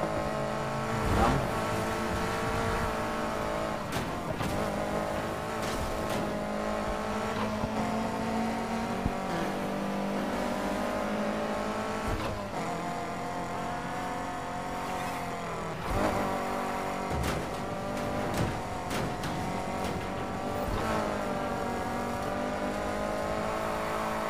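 Tyres screech as a car drifts through corners.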